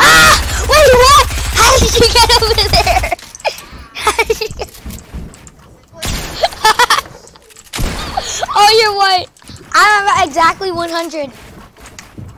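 A boy talks excitedly and loudly into a close microphone.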